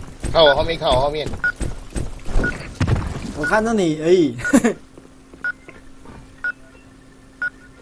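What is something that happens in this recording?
A countdown timer beeps once every second.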